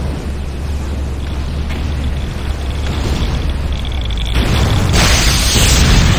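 An electric beam crackles and buzzes.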